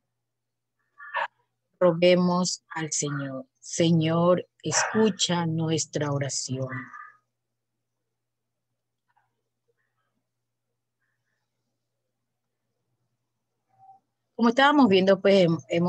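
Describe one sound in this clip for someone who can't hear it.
A woman reads out aloud over an online call.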